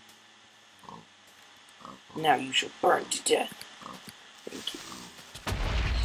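A pig squeals in pain.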